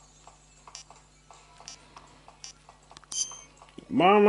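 Buttons on a handheld game console click softly.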